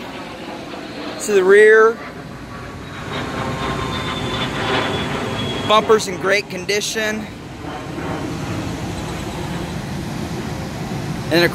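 A car engine idles with a deep, steady exhaust rumble.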